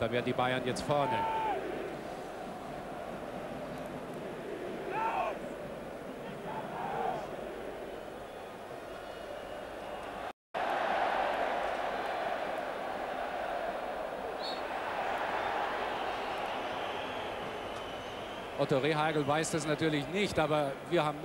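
A stadium crowd murmurs and cheers steadily in a large open space.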